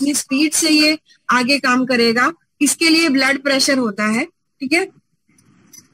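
A woman speaks with animation, close to the microphone.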